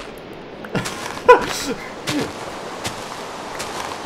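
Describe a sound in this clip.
Blocks of earth crunch as they are dug away.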